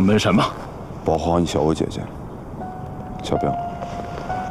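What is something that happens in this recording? A second man speaks calmly, close by.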